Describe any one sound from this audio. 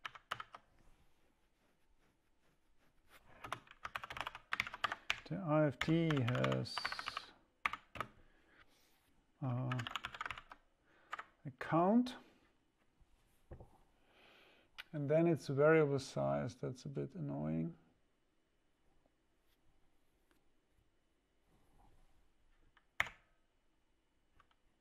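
Keys clatter on a keyboard.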